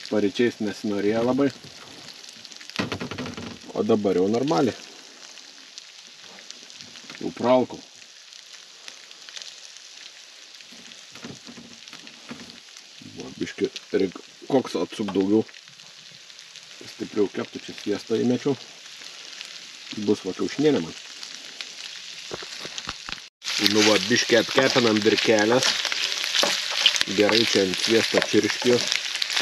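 Meat sizzles in a frying pan.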